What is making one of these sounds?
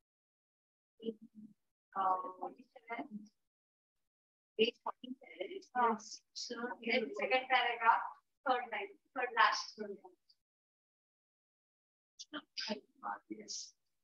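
A woman speaks calmly and clearly, as if teaching, close to a microphone, with pauses.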